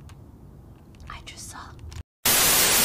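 A young woman speaks softly into a microphone.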